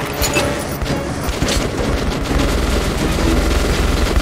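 A fireball explodes with a roar.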